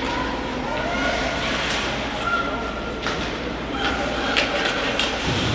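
Ice hockey skates scrape and carve across ice in an echoing arena.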